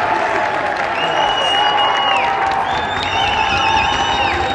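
An umpire's whistle blows in loud, shrill blasts.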